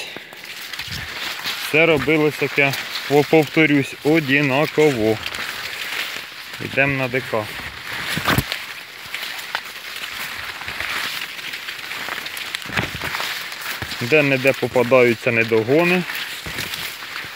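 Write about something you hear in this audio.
Leaves rustle and brush close by.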